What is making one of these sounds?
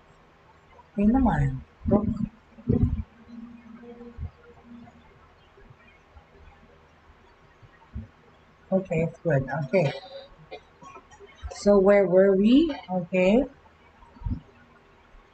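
A middle-aged woman speaks calmly and closely through a microphone, in short bursts with pauses.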